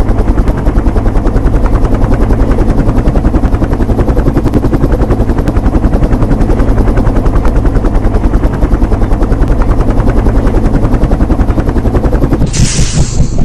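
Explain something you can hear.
An aircraft engine hums with a rapid throbbing pulse.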